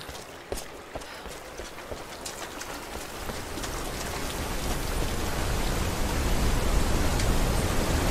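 Footsteps tread on rocky ground.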